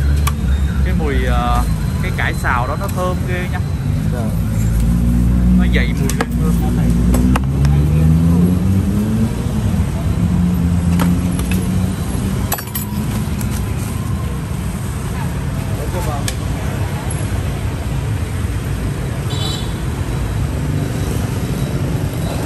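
Steady traffic and street bustle hum in the background outdoors.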